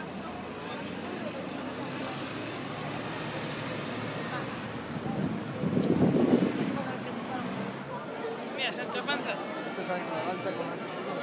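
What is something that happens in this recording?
A crowd of people talks and murmurs all around outdoors.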